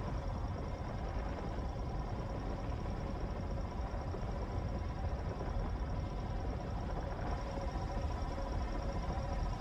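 A deep spaceship engine drones steadily.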